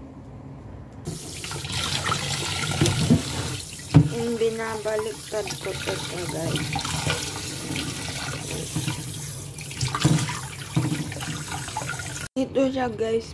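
Tap water runs steadily into a metal sink.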